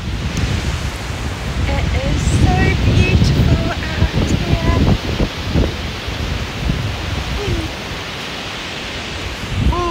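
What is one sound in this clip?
Waves break and wash on a shore.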